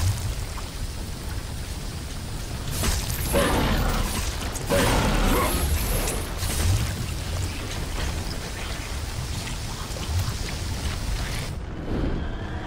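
A deep rumble rolls on steadily.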